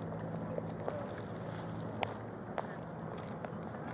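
Footsteps walk quickly on pavement.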